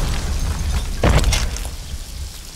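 A heavy boot stomps down with a thud.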